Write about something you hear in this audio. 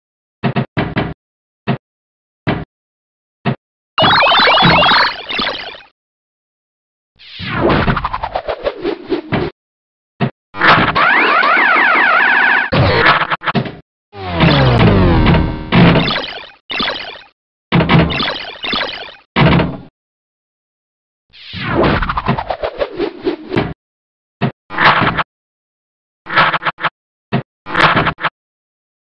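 Pinball game sound effects beep, whoosh and chime in quick bursts.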